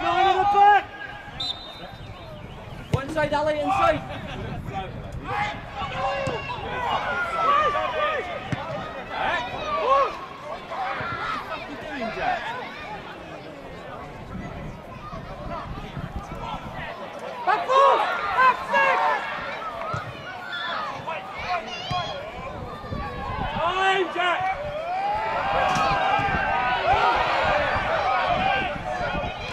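Players shout to each other outdoors across an open pitch.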